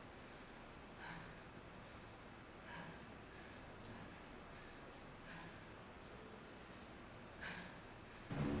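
Bare feet step softly across a hard floor.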